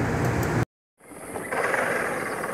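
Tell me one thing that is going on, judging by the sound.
A small electric ride-on car whirs along a paved road outdoors.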